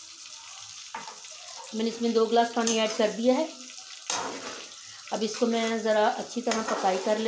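A metal spoon scrapes and stirs through thick sauce.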